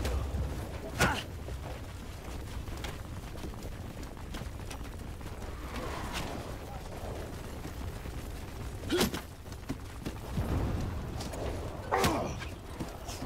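Cannon blasts boom sharply now and then.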